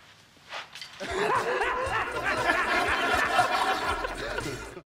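A young man laughs loudly and heartily.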